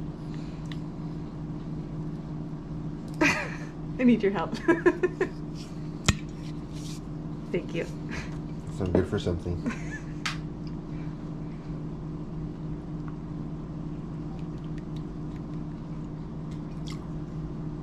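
A plastic spoon scrapes and taps against a plastic bowl.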